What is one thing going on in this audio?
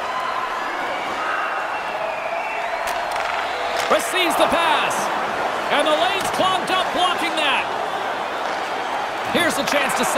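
Skates scrape and swish across ice.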